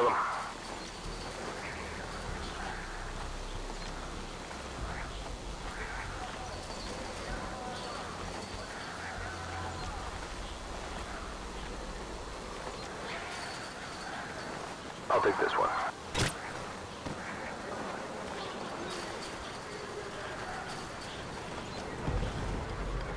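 Strong wind howls steadily outdoors in a blizzard.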